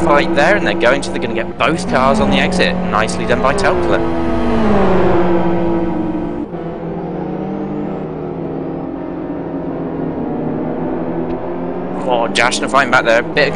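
Racing car engines roar and change pitch as the cars accelerate and slow through corners.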